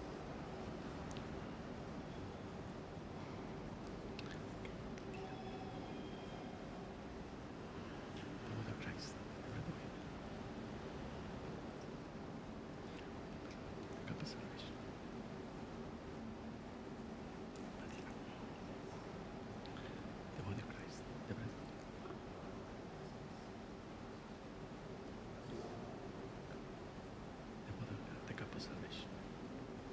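A man speaks quietly and calmly at a distance in a large echoing room.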